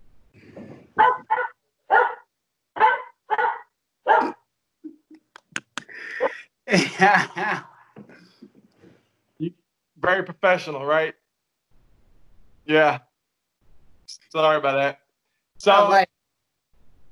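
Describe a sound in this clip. A second man talks calmly over an online call.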